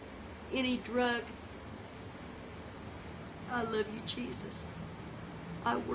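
A middle-aged woman speaks with animation close to the microphone.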